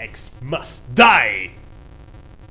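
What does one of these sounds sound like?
A man laughs loudly close to a microphone.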